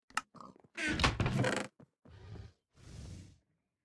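A wooden chest creaks open.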